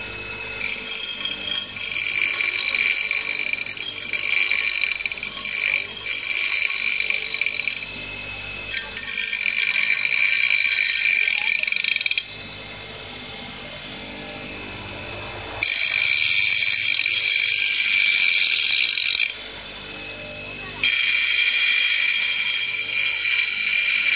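A bench grinder hums steadily as its wheel spins.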